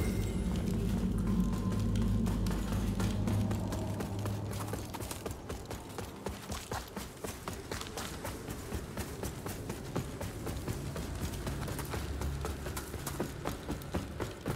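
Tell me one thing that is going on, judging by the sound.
Armoured footsteps thud quickly over stone and wooden floors.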